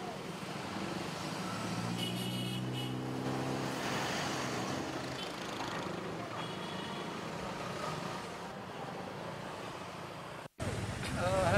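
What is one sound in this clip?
Traffic passes by on a street.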